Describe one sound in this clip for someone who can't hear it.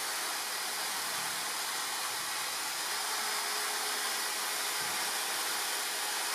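An angle grinder with a sanding disc whirs at high speed.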